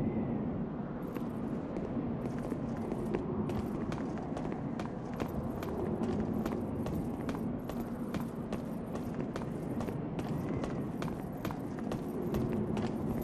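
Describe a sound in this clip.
Armored footsteps run quickly over stone.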